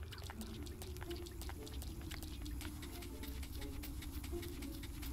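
Footsteps patter quickly on a stone path.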